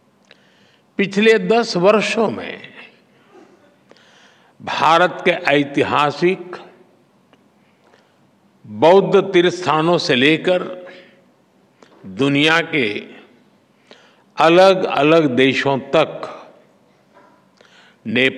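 An elderly man speaks into a microphone with emphasis, in bursts separated by pauses.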